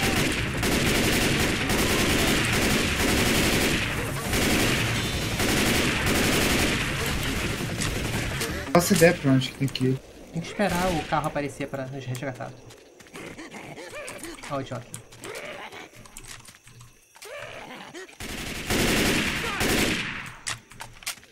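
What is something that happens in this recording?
An automatic rifle fires rapid bursts of shots.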